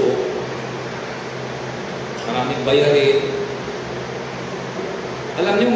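A man speaks in bursts into a microphone, heard through a loudspeaker in an echoing room.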